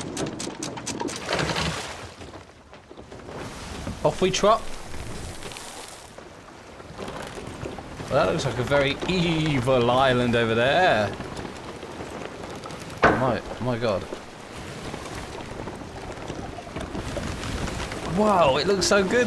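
Waves surge and splash steadily against a wooden ship.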